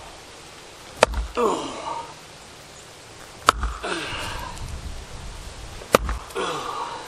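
An axe strikes wood with sharp, loud thwacks.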